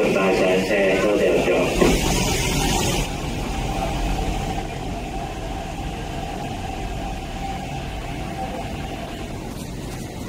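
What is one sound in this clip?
Train brakes squeal as the train slows.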